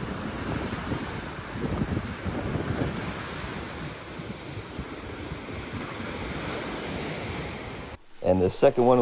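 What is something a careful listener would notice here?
Rough waves crash and churn against a shore.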